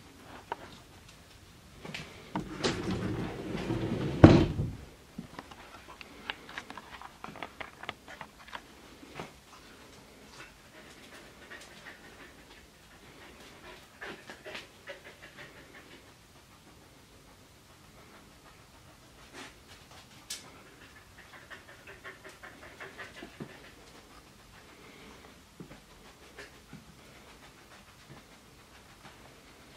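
A dog sniffs around.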